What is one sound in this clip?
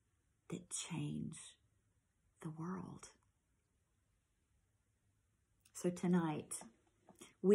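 A woman speaks calmly and closely, in short phrases with pauses.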